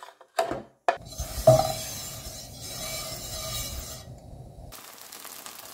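Oil sizzles in a hot pan.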